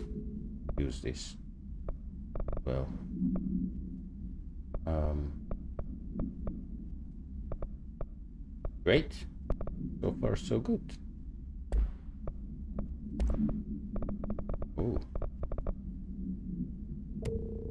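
Short interface clicks and ticks sound as menu selections change.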